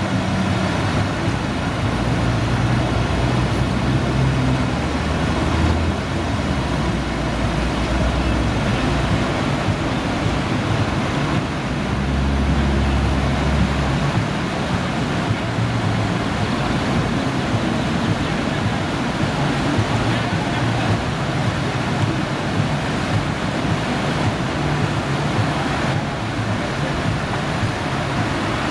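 Whitewater rushes and roars loudly and steadily.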